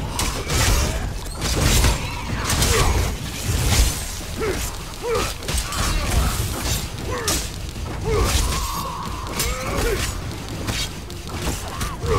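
A man talks into a microphone.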